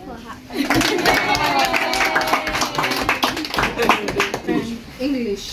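A crowd cheers and shouts excitedly.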